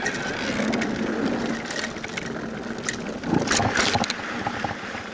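Bicycle wheels rattle and thump over wooden boards.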